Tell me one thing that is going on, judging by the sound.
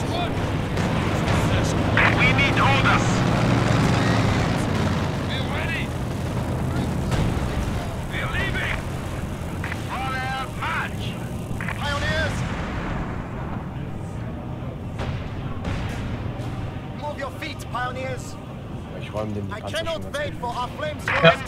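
Machine guns fire in short bursts.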